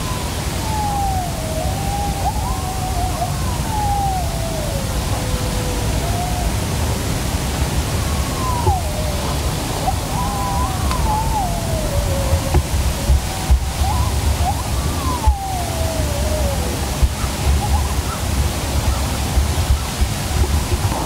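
Wind rumbles and buffets outdoors.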